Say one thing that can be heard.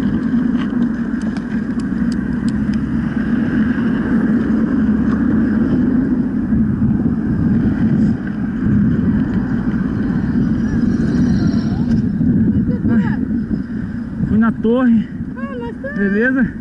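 Wind rumbles over the microphone outdoors.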